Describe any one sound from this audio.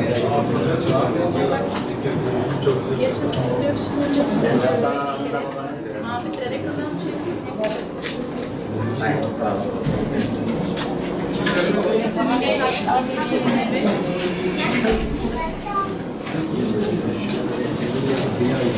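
A crowd of men and women chatter and talk over each other nearby.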